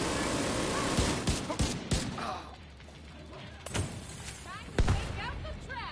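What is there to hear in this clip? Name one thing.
Rifle shots crack loudly several times.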